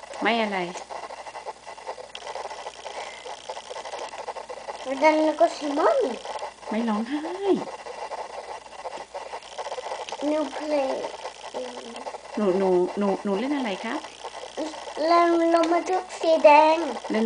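A young boy speaks and sings in short bursts close by.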